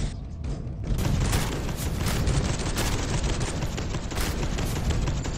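A heavy gun fires rapid bursts of loud shots.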